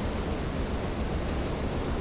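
A wave crashes and splashes up in spray.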